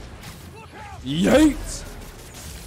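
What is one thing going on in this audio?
A loud explosion bursts.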